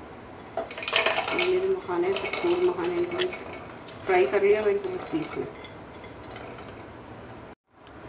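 Dry puffed seeds rattle as they are poured into a plastic jar.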